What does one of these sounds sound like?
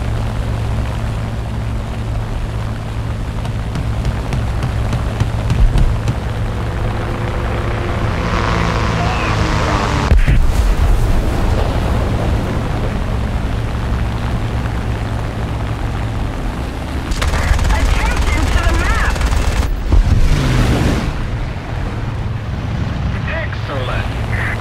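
Aircraft engines drone loudly and steadily.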